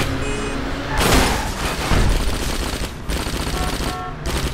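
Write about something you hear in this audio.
A motorcycle crashes and explodes.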